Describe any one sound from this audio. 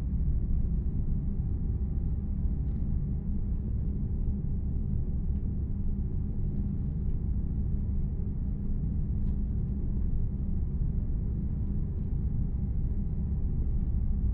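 Tyres roll on the road with a steady hum.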